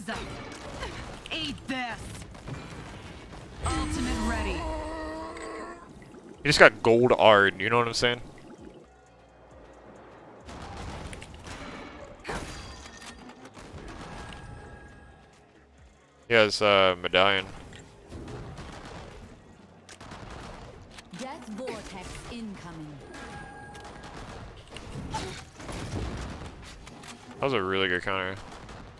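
Spells and weapons in a game clash and burst.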